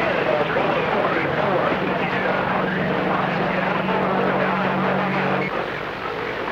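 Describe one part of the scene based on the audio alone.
A low steady hum from a radio signal drones, then cuts off suddenly.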